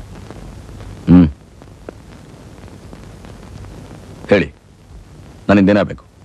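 A man speaks calmly in short phrases.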